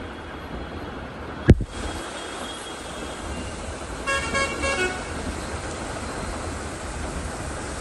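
A truck drives through deep water.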